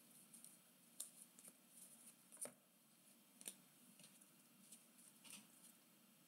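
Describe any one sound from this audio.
Stiff cards softly slide and flick against each other in a hand.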